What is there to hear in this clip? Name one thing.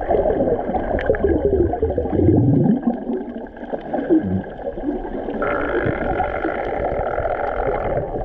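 Air bubbles burble up from a swimmer underwater.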